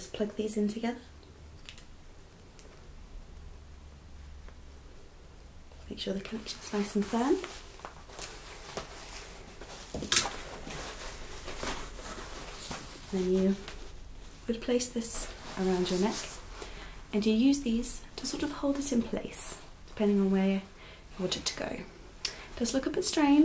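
Leather rustles and creaks in hands.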